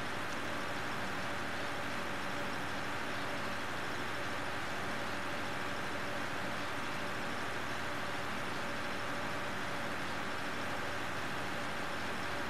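A tractor engine hums steadily as it drives along.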